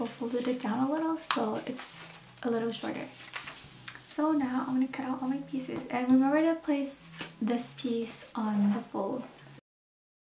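Paper rustles and slides on fabric.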